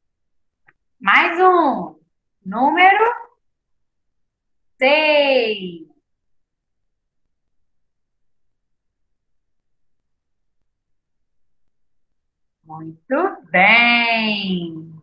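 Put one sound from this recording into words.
A young woman speaks slowly and clearly through a microphone, in short phrases with pauses.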